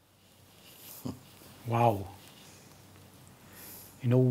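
An elderly man speaks calmly and close up through a microphone.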